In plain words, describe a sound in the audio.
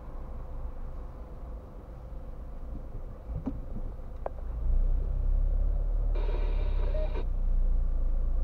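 A car engine idles with a steady low rumble, heard from inside the car.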